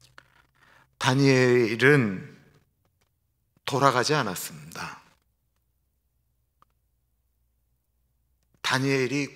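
A man speaks calmly into a microphone, with pauses.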